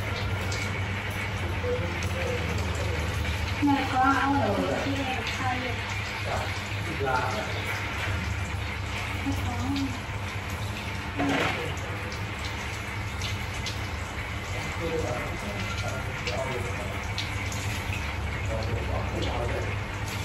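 Water sprays from a hand shower and splashes onto a face.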